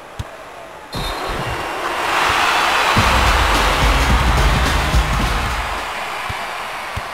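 A crowd cheers loudly in a large arena, then fades.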